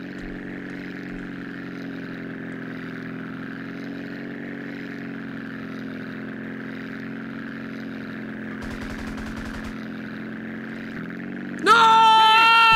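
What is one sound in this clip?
A small propeller plane engine drones steadily.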